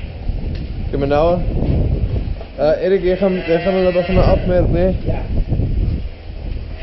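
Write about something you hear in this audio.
A man calls out to the cattle.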